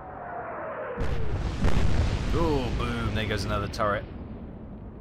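Shells explode and throw up water with heavy crashing bursts.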